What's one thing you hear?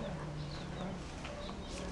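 Footsteps scuff on dry dirt.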